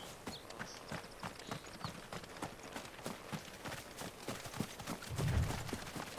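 Quick footsteps run over dry ground and grass.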